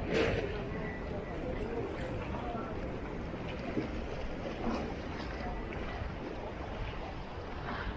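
Sea waves wash against rocks nearby.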